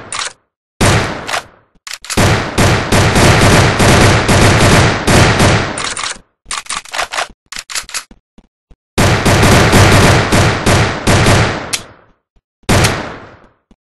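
A game rifle fires in rapid, loud bursts of shots.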